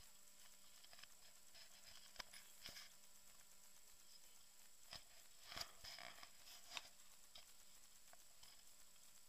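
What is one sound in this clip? Footsteps scuff softly on a stone path.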